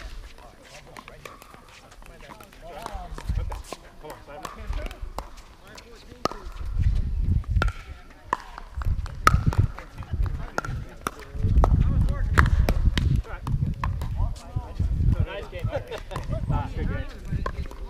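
Paddles pop sharply against a plastic ball in a quick rally.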